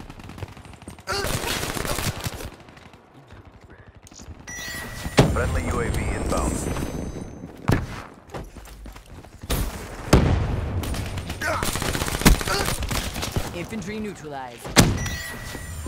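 Automatic gunfire rattles off in bursts in a video game.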